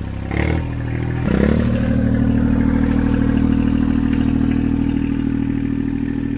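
A tractor diesel engine chugs loudly close by and revs up.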